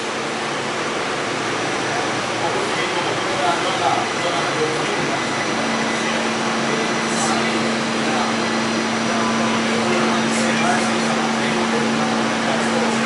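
A subway train hums and rumbles steadily while standing at a platform.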